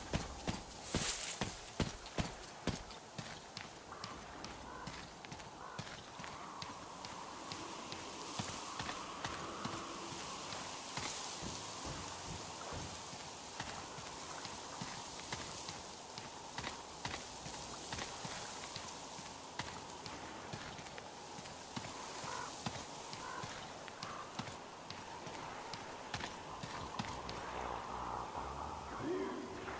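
Footsteps crunch steadily over a gritty metal deck.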